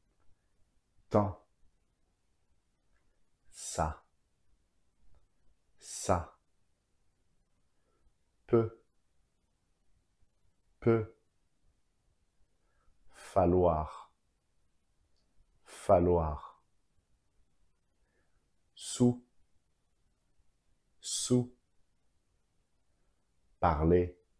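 A man pronounces single words clearly and slowly into a close microphone, with pauses between them.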